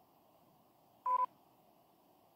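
A short electronic game chime sounds.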